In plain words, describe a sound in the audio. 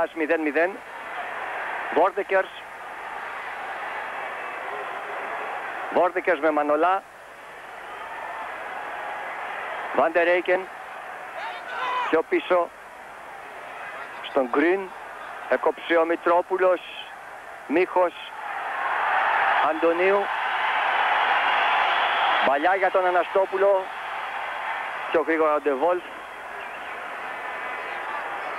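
A large stadium crowd roars, swelling loudly at times.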